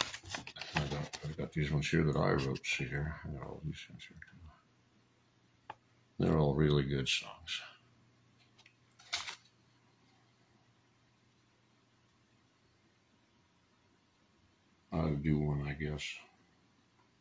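A middle-aged man speaks calmly and closely into a microphone, in short bursts.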